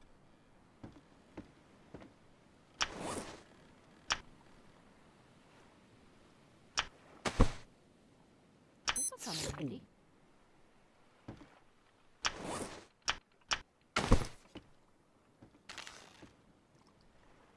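Small waves lap gently against a wooden raft.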